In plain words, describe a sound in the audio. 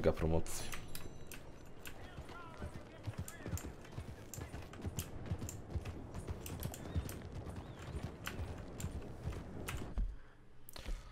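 A horse's hooves clop steadily along a dirt road.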